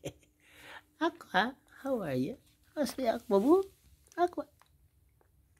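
A person talks in a high, coaxing voice close by.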